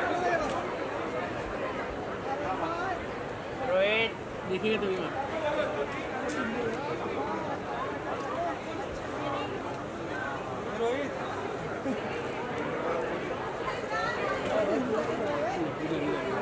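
A crowd of women chatter and call out loudly close by.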